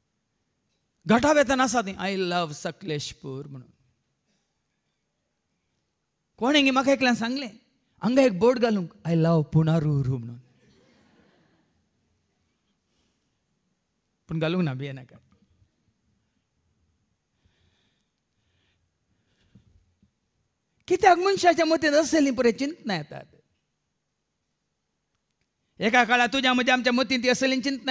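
A man speaks through a microphone in short bursts with pauses, with animation.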